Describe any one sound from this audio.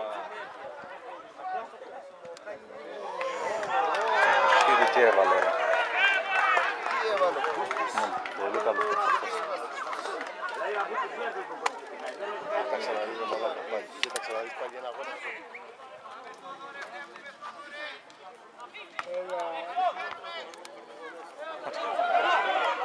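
A small crowd of spectators shouts and cheers excitedly outdoors.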